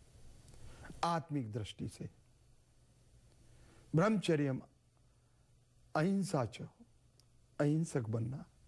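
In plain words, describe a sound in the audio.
An elderly man chants in a sustained, melodic voice through a microphone, in short phrases with pauses between.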